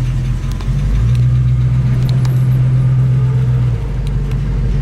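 A car engine revs up louder, then settles back.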